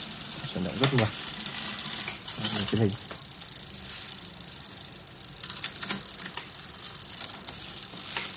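A bicycle freewheel ticks rapidly as the wheel spins.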